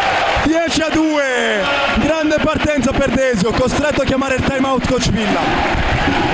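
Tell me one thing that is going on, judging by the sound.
A crowd of spectators chants loudly in a large echoing hall.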